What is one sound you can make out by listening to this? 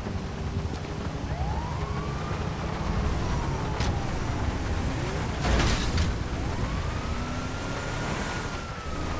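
A truck engine rumbles as it drives along a street.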